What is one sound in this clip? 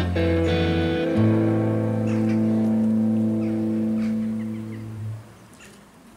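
Electric and acoustic guitars ring out a final chord through loudspeakers.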